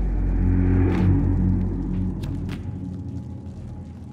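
Small footsteps patter quickly on a hard floor.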